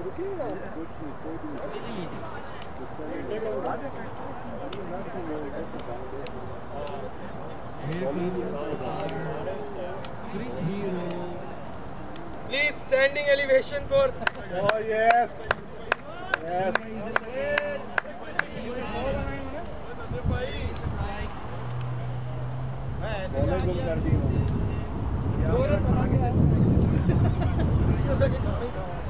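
Several men talk and call out outdoors.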